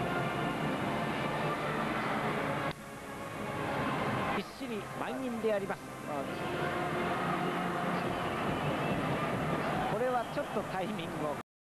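A large stadium crowd cheers and chants steadily.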